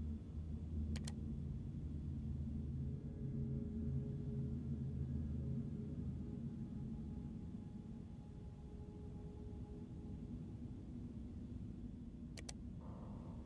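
A short electronic menu click sounds.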